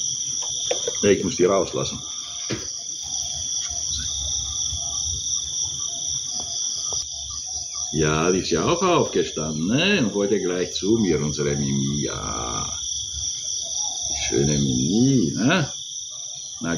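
An elderly man talks calmly and close by.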